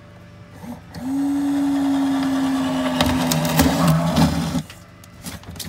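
A cordless drill whirs steadily, then revs in short bursts.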